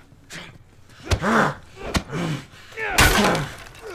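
Fists thud in a brawl.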